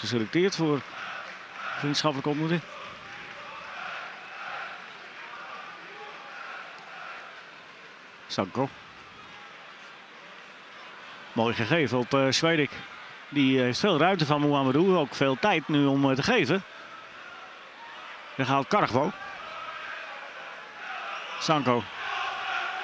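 A large stadium crowd murmurs and chants steadily in the open air.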